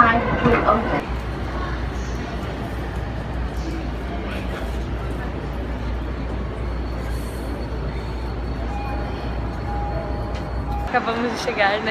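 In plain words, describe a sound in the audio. A train hums steadily while stopped.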